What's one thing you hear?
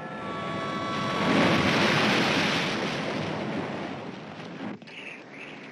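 Waves crash against rocks with a loud roar.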